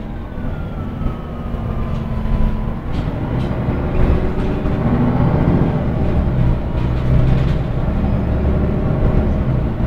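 A bus engine hums and rumbles steadily while driving.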